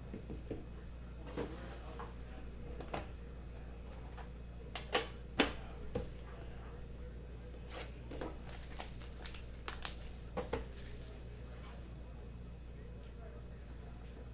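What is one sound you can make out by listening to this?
A metal tin clicks and knocks as its lid is opened and set down.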